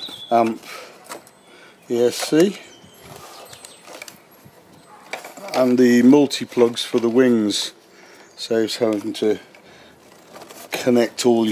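Plastic parts click and rattle softly as hands handle them.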